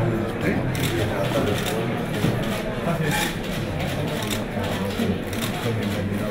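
Scissors snip through a ribbon.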